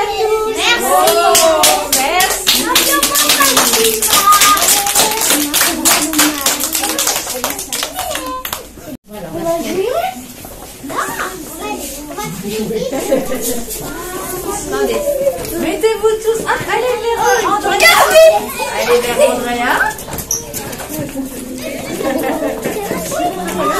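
A woman speaks to children in a lively voice.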